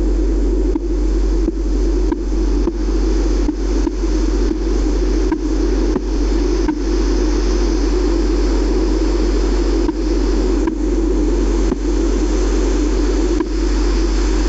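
Stone blocks are placed with soft, quick thuds.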